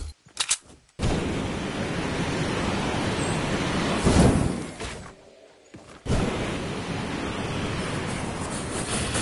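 A jetpack roars as it thrusts.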